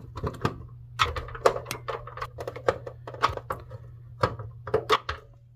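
A screwdriver turns screws in a plastic casing.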